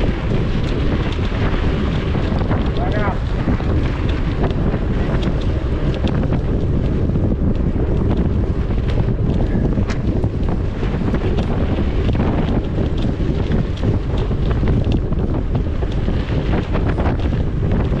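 Wind rumbles loudly against a moving microphone outdoors.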